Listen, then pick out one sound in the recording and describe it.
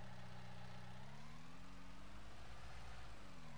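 A diesel engine revs up and its pitch rises and falls.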